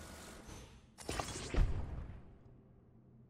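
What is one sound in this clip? A magical whoosh ends in a heavy thud.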